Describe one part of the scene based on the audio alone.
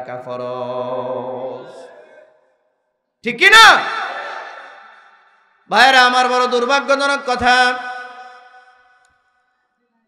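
A man preaches forcefully into a microphone over a loudspeaker, with a ringing echo.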